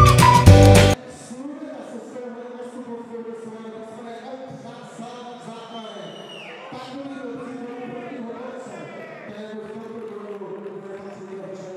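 A man announces through a microphone over loudspeakers with animation, in a large echoing hall.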